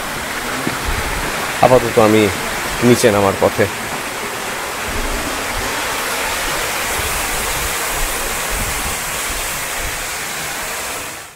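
Water rushes steadily over rocks.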